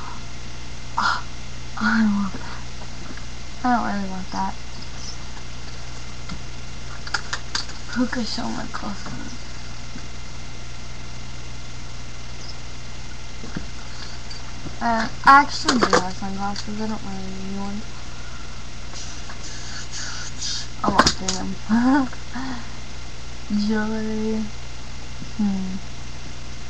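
A young girl talks close to the microphone, in bursts with pauses.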